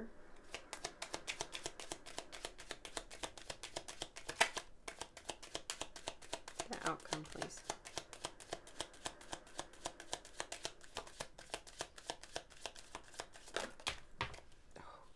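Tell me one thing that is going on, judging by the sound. Hands make quick, steady clicking taps close by.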